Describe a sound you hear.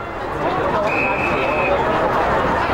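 A referee's whistle blows one short blast.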